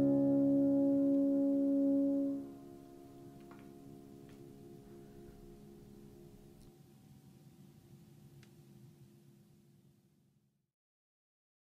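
A piano plays a final chord that rings out and slowly fades away.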